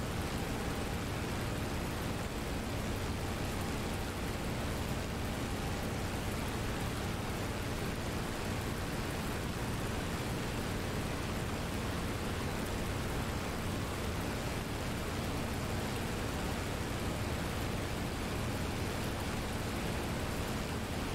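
A propeller aircraft engine drones steadily with a deep roar.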